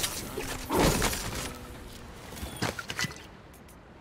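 A short electronic click sounds as a menu opens.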